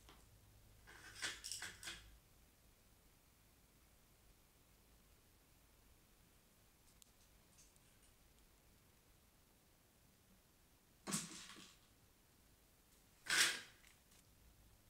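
Small plastic objects clatter and thud as they are knocked over.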